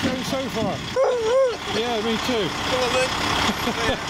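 A dog yelps and whines excitedly.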